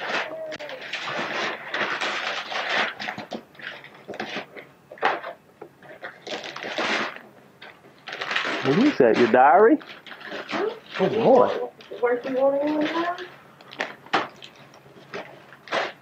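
Wrapping paper rustles and tears as a gift is unwrapped.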